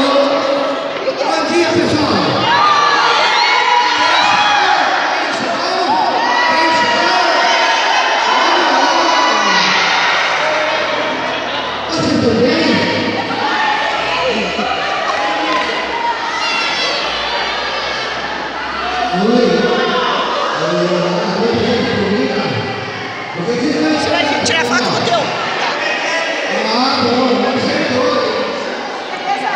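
A crowd of adults and children chatters in a large echoing hall.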